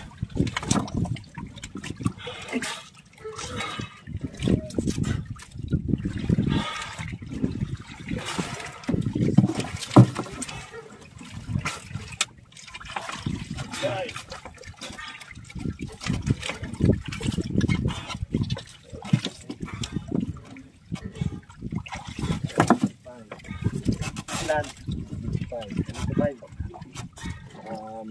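Wet fish slap and slide against each other.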